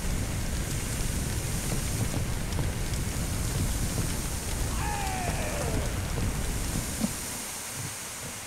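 Water sprays hard from a fire hose.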